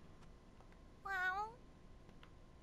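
A cat meows once.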